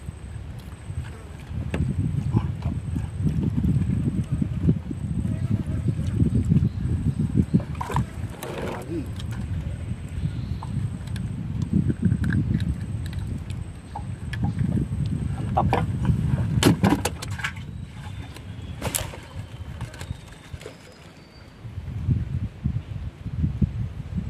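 Water laps gently against a wooden boat.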